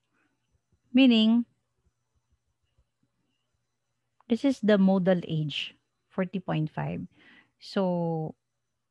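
A woman speaks calmly into a microphone, explaining in short phrases.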